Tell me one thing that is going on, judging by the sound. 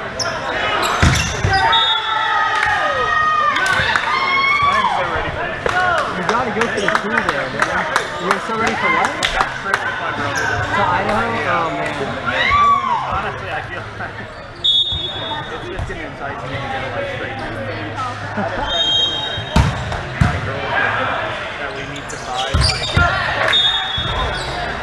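A volleyball thumps as it is hit.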